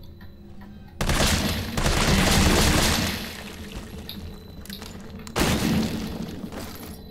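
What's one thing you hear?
A handgun fires several loud shots that echo.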